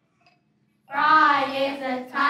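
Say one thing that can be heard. A young child sings out loudly in a large echoing hall.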